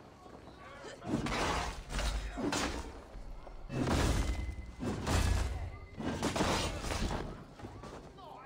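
Sword blows clash and thud in combat.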